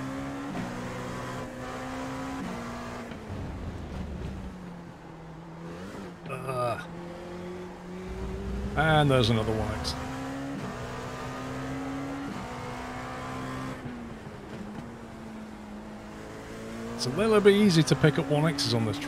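A race car engine whines steadily, shifting gears up and down.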